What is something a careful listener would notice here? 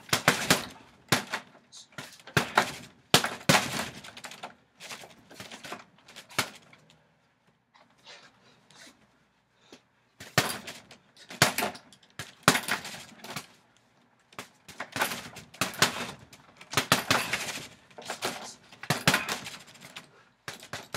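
Gloved punches thud against a heavy punching bag in quick bursts.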